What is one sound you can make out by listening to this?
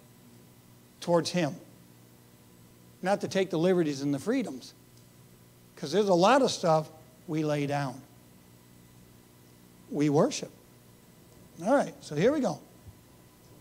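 A middle-aged man speaks with animation into a clip-on microphone, pausing between phrases.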